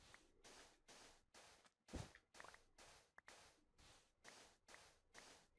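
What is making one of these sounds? A shovel digs into sand again and again with short, gritty scraping bursts.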